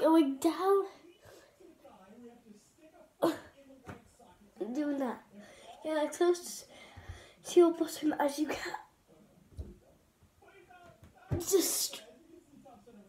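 A young girl talks and sings in short bursts close by.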